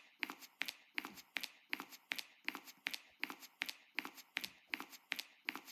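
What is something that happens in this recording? Quick footsteps patter as a game character runs.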